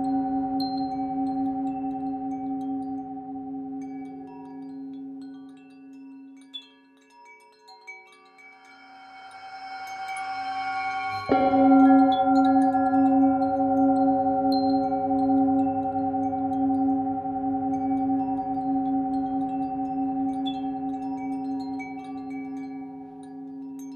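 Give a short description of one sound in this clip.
A singing bowl rings with a deep, shimmering tone that slowly fades and then swells again.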